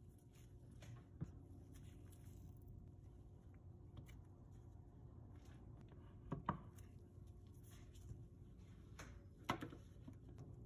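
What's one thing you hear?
Soap bars knock softly as they are set down on a hard surface.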